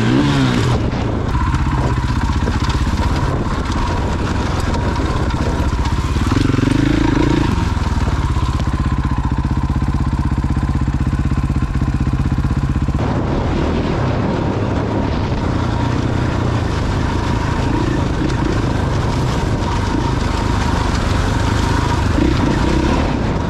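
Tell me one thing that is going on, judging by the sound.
Wind rushes loudly past a microphone.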